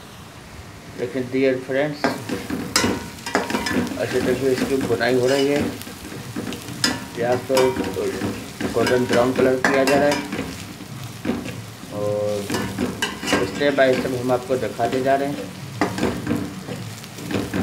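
A metal spatula scrapes and knocks against a pot.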